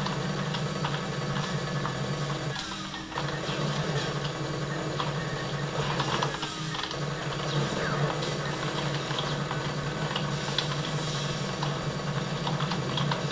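Keys on a keyboard click and clatter rapidly.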